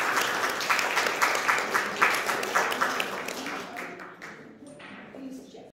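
A middle-aged woman speaks into a microphone.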